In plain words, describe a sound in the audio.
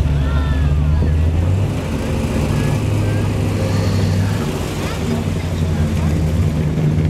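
An old car engine rumbles low and steady as the car rolls slowly past close by.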